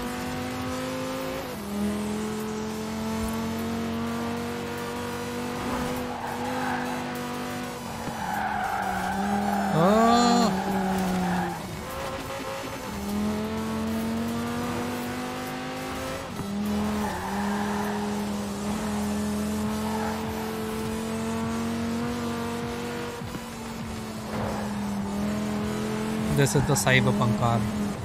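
A car engine roars at high speed, shifting gears.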